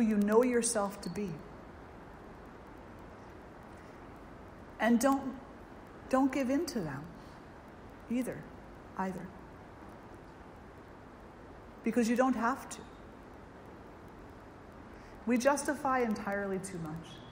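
An elderly woman speaks calmly through a microphone, in short phrases with long pauses.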